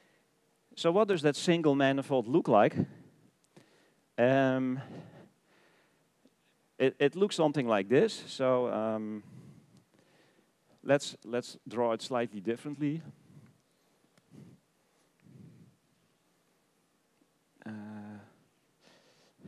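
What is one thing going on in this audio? A man lectures calmly through a microphone.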